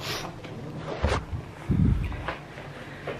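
A phone rustles and bumps against a hand.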